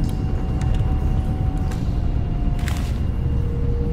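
Paper rustles as a note is unfolded.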